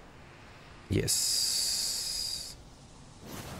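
A shimmering magical chime rings out and fades.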